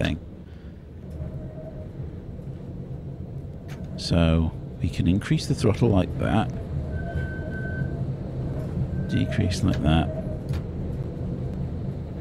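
A tram rumbles along the tracks.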